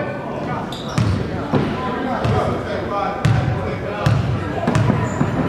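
A basketball bounces on a wooden floor in an echoing gym.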